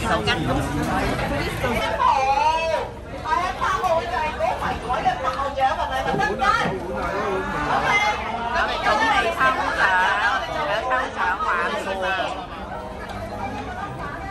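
A crowd of diners chatters loudly all around in a busy, echoing room.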